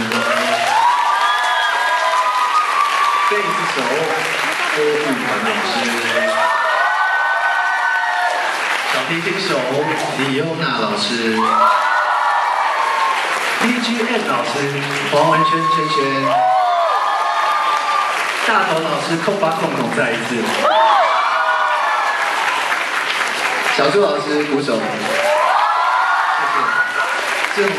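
A young man sings through a microphone and loudspeakers in a large echoing hall.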